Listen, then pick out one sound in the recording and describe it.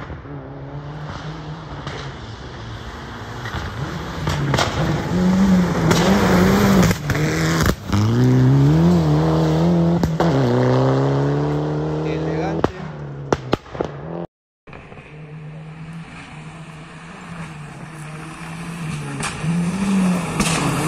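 A rally car engine roars and revs hard, changing gear as it speeds closer and passes.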